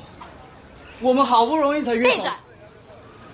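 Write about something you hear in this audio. A young woman speaks firmly.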